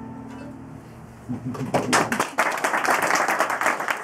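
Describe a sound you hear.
A mandolin is strummed.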